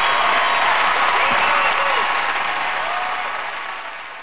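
Audience members whoop and shout excitedly.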